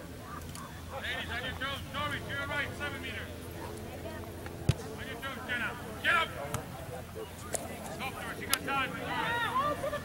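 Girls shout and call out across an open field.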